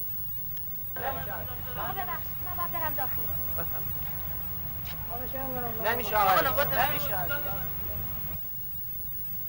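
A woman speaks loudly and with agitation nearby.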